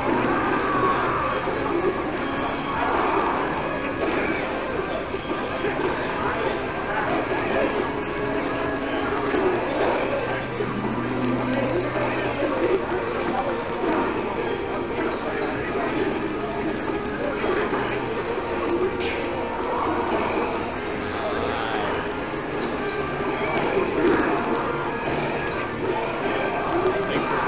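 Video game hits and sound effects pop and whoosh.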